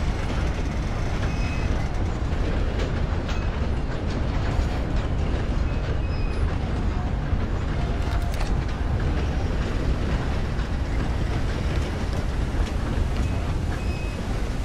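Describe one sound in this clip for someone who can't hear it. A steam train rumbles and clatters steadily along the tracks.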